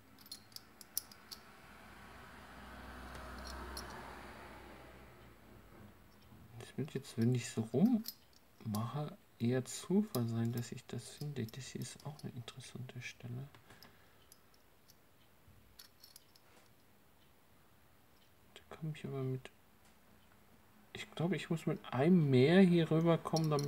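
Metal puzzle pieces clink and scrape together in someone's hands.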